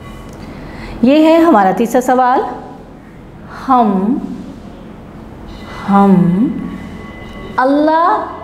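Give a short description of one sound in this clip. A woman speaks clearly and deliberately into a close microphone, in short phrases with pauses.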